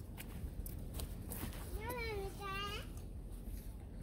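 A man's footsteps crunch on dry grass close by.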